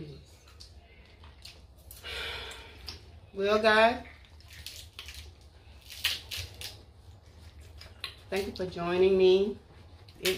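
Paper wrappers crinkle as food is unwrapped.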